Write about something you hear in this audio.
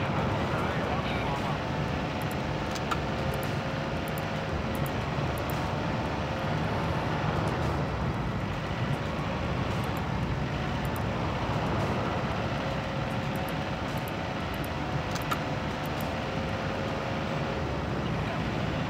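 Heavy truck engines rumble steadily.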